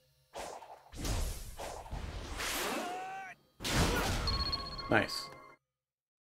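A quick whoosh sweeps past several times during a spinning kick.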